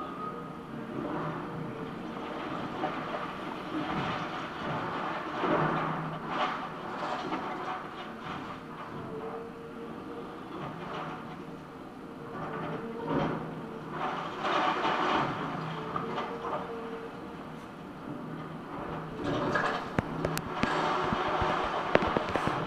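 Bricks and concrete crack and crash as an excavator tears at a wall.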